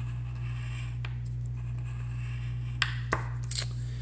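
A coin scrapes across a scratch card.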